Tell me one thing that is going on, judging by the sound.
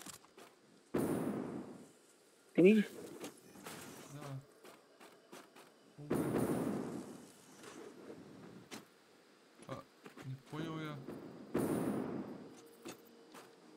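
A building piece whooshes and thuds into place, again and again.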